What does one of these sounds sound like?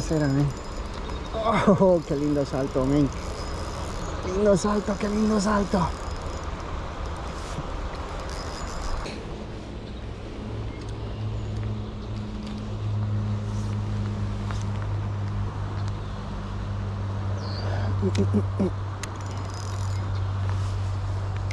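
A stream of water flows gently nearby.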